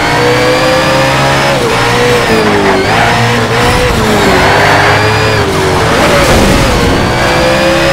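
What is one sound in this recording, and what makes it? A racing car engine roars at high revs, its pitch rising and dipping with gear changes.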